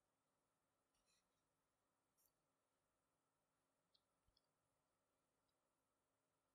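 Nylon cord rustles faintly between fingers.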